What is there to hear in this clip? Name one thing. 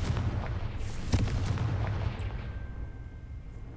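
Heavy metal gears clank and grind as they turn.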